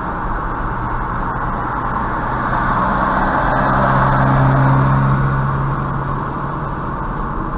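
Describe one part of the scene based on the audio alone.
A passing truck rumbles close by and fades.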